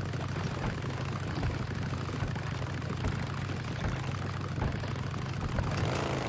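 Motorcycle tyres thump over wooden planks.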